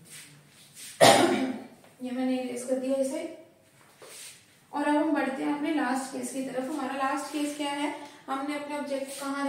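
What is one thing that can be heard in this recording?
A young woman speaks clearly and calmly close by.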